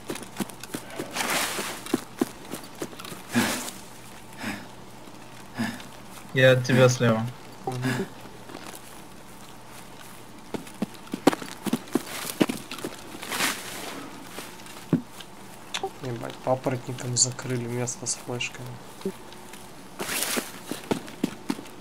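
Leafy branches brush and rustle past.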